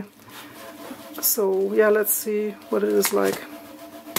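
Hands turn a cardboard spool with a soft scraping.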